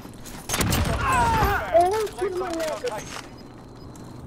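A man speaks with animation into a headset microphone.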